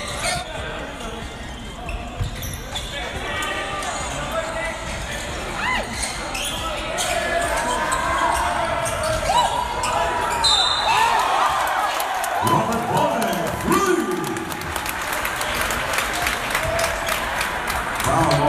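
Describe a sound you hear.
A crowd of spectators cheers and shouts loudly in a large echoing hall.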